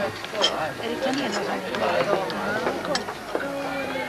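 A cup clinks against a saucer.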